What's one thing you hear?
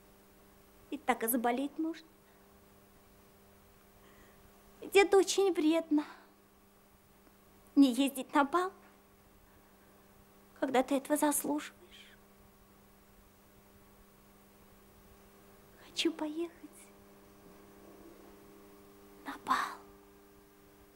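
A young woman speaks softly and wistfully in short phrases, close by.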